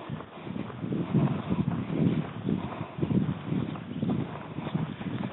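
Footsteps rustle through leaves and undergrowth at a steady walking pace.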